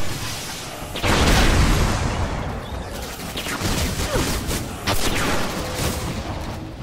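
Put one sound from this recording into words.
An explosion bursts nearby with a loud roar.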